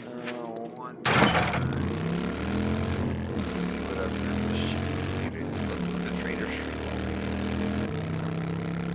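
A motorcycle engine starts with a loud burst and then roars steadily, shifting pitch as it rides.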